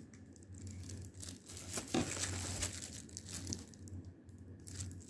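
Plastic wrap crinkles as it is handled.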